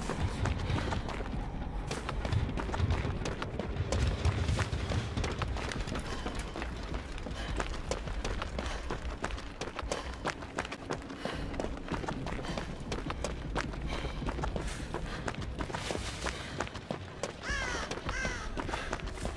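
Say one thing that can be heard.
Footsteps run quickly over grass, dirt and wooden boards.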